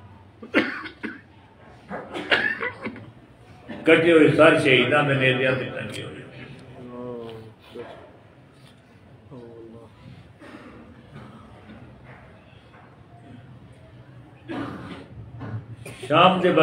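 An elderly man speaks with emotion into a nearby microphone, his voice trembling.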